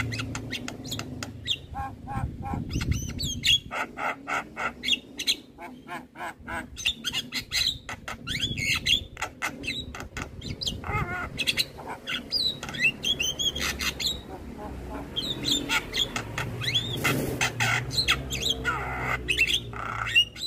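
A bird sings a rapid, varied song of whistles, chirps and clicks.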